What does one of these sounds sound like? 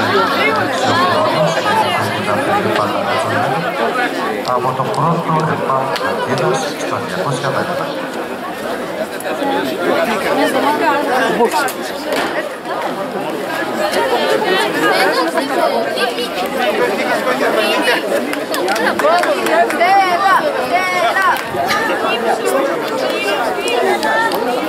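A crowd of people chatter and call out nearby outdoors.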